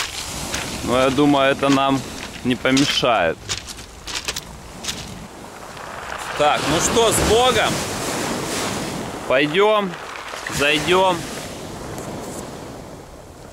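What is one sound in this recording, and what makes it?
Waves wash onto a pebble shore.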